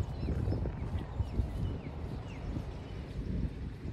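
A man's footsteps thud on soft grass nearby.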